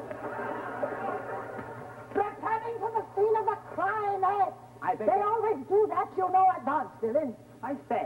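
A woman speaks with animation.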